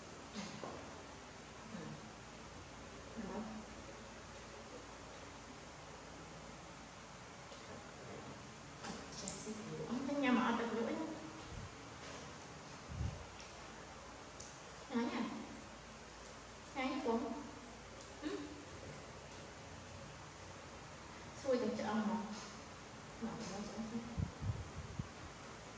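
A woman talks gently and closely.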